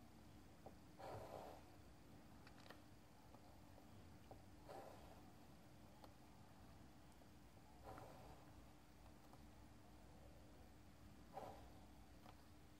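A pencil scratches faintly across paper in short strokes.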